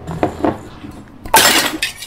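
A glass is set down on a desk with a knock.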